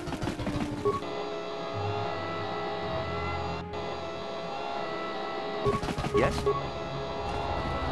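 A small robot whirs as it rolls along.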